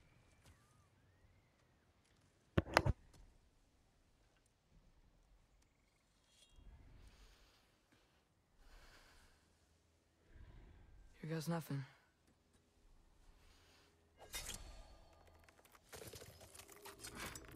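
A large bear growls low and close.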